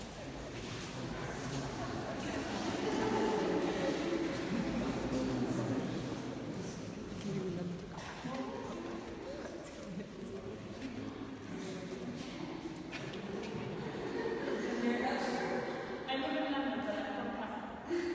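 A crowd of adults chatters and murmurs in a large echoing hall.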